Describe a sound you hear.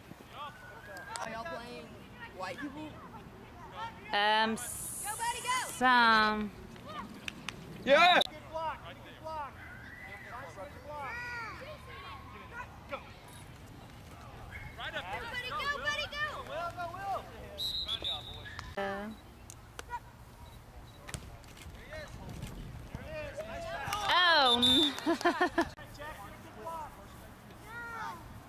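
Adults and children shout and cheer outdoors from a short distance.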